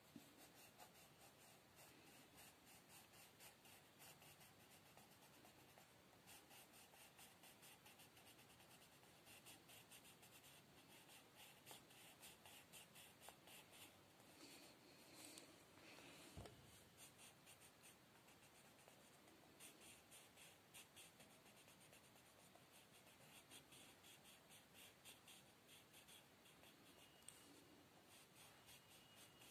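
A coloured pencil scratches quickly back and forth on paper, close by.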